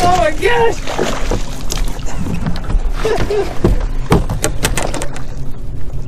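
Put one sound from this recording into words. A fish splashes hard in the water beside a boat.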